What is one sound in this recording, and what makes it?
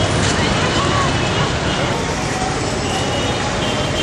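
A crowd chatters on a busy street.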